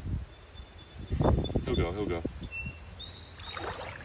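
A fish splashes briefly in shallow water.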